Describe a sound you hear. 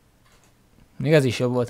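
A young man speaks up close to a microphone.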